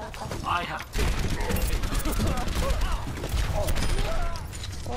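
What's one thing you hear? A rapid-fire video game rifle shoots in quick bursts.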